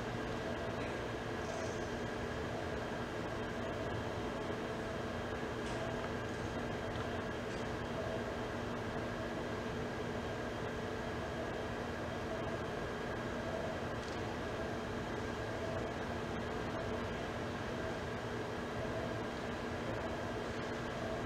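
A large seated crowd murmurs softly in a big hall.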